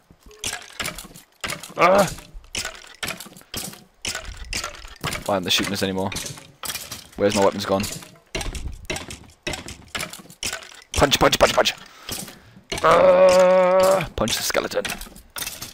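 A sword repeatedly strikes a rattling skeleton.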